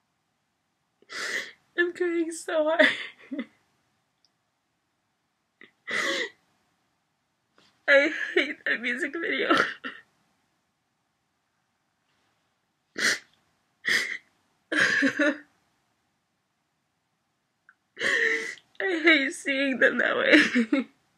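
A young woman sobs and cries close by.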